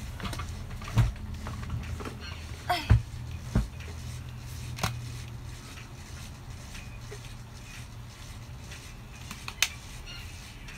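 Knocks and thuds sound as objects are handled on a desk.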